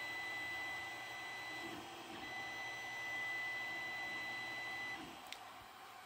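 A 3D printer's motors whine and hum steadily.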